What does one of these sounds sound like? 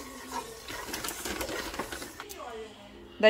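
A wooden spoon stirs and scrapes dry crumbs in a pan.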